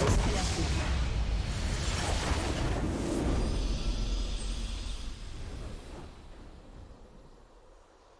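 A game's victory fanfare swells and fades.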